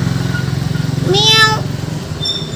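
A cat meows loudly.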